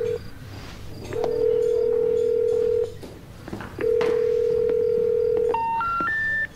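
A phone call rings out through a phone's earpiece with steady repeated tones.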